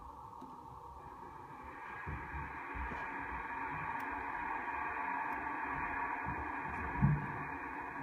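Electronic game music plays softly from computer speakers.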